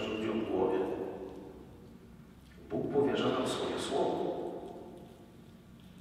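A man speaks calmly into a microphone, echoing in a large reverberant hall.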